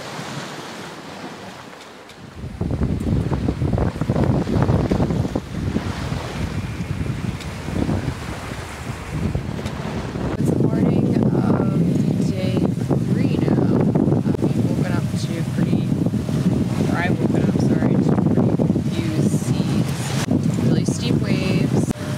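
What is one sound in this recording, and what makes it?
Waves rush and splash against a sailing boat's hull.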